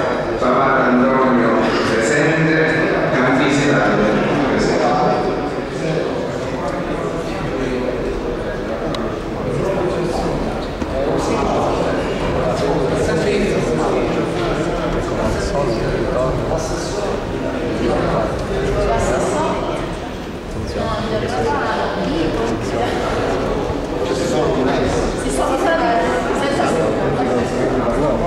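Many men and women talk at once, echoing in a large hall.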